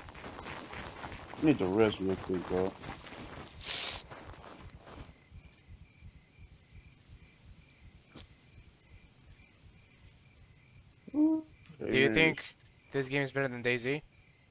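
Footsteps crunch over dry grass and dirt.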